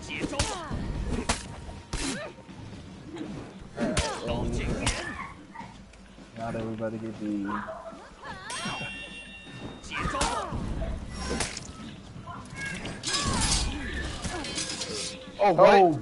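Swords clash and strike with sharp metallic impacts.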